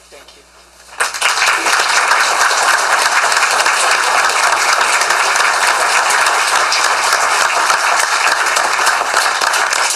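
Applause breaks out in a room and carries on steadily.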